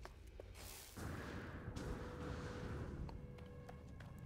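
A teleporter hums and whooshes.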